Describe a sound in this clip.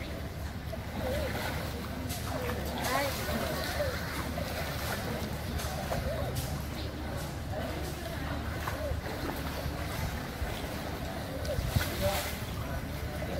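Children call out and chatter in the water.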